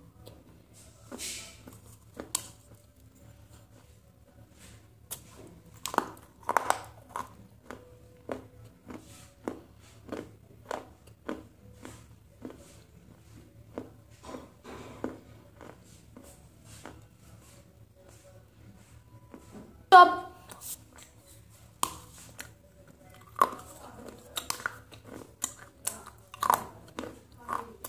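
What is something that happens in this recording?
A young woman chews with crunching and smacking sounds close to a microphone.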